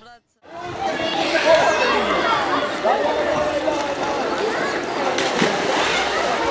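Water splashes as swimmers paddle.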